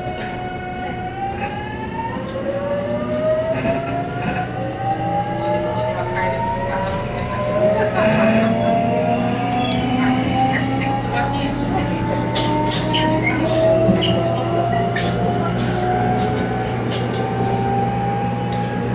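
Train wheels clatter and click over rail joints.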